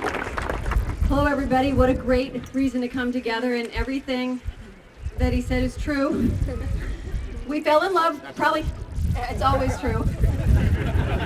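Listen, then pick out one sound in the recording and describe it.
A man speaks through a loudspeaker to a crowd.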